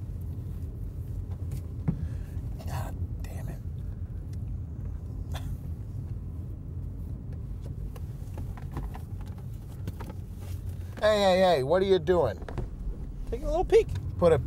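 A car engine hums steadily inside a car.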